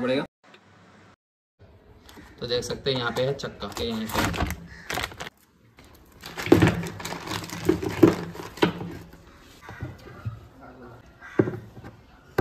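A plastic panel clicks and knocks as it is handled.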